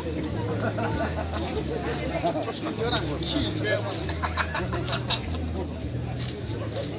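Many men chatter at once outdoors.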